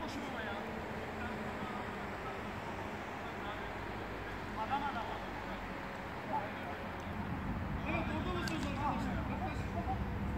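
Young men shout to each other across an outdoor football pitch.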